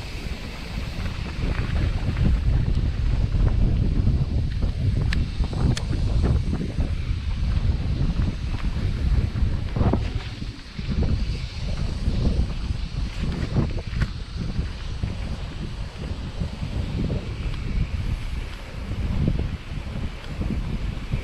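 Bicycle tyres roll and bump over a rough dirt trail.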